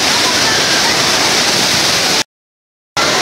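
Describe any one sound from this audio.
Water rushes loudly over a weir.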